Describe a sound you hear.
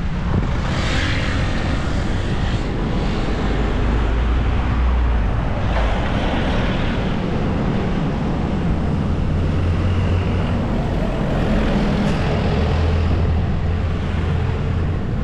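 Steady wind rumbles against the microphone outdoors.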